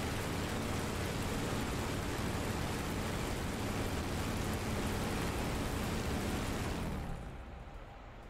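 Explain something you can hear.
An aircraft engine roars steadily, then cuts off.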